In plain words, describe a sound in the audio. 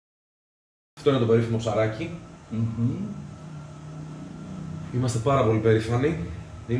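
A man talks calmly indoors.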